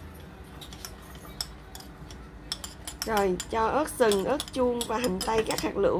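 A spoon scrapes chopped vegetables off a plate into a pot.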